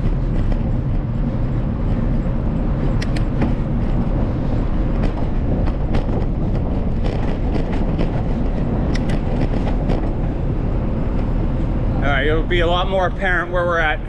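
Wind rushes steadily over the microphone outdoors.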